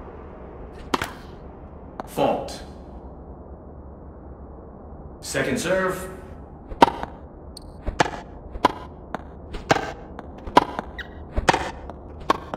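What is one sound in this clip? A tennis ball is struck sharply by rackets, back and forth.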